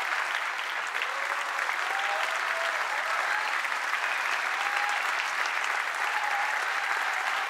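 An audience cheers and whistles.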